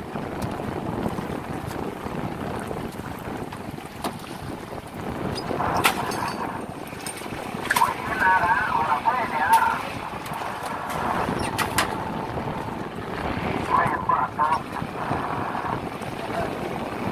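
A boat engine rumbles steadily outdoors.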